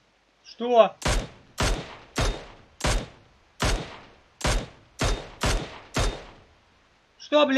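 Rifle shots crack in quick succession, each ringing out.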